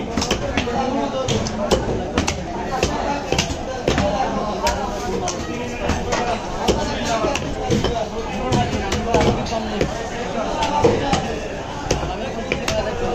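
A heavy knife chops down onto a wooden block in sharp, repeated blows.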